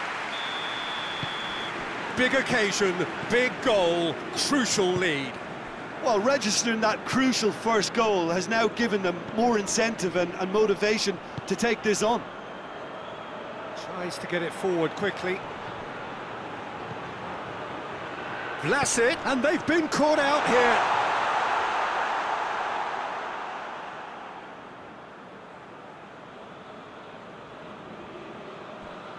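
A stadium crowd roars steadily, swelling loudly for a moment before dying down.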